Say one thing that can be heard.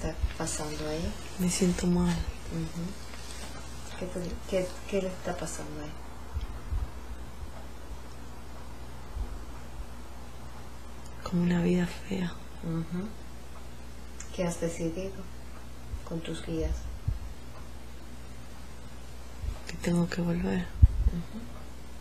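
A woman speaks softly and haltingly, close by.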